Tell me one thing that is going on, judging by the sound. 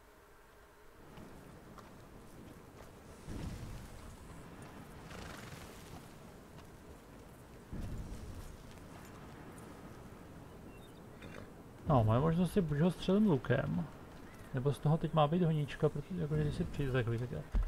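A horse's hooves thud softly on grass.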